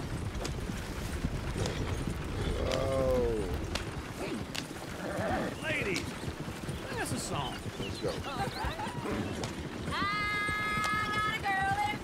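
A wooden wagon rattles as it rolls along.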